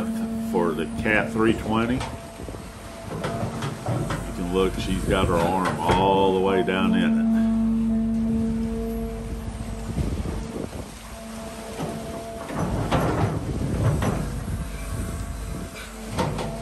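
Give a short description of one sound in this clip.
An excavator bucket scrapes and digs into soil.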